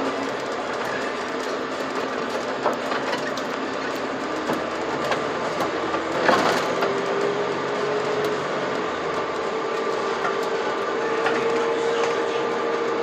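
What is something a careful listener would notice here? A bus engine hums steadily, its pitch slowly rising.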